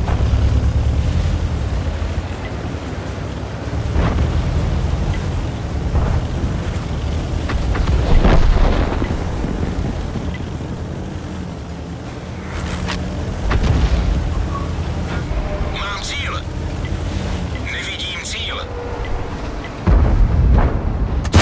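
A tank engine rumbles and clanks steadily.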